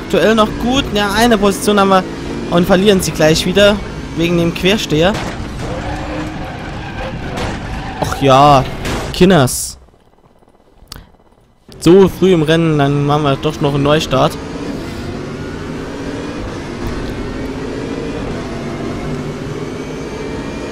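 A race car engine roars and revs up and down.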